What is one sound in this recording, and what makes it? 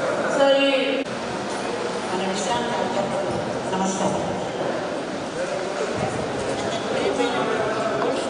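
An elderly woman talks cheerfully close by.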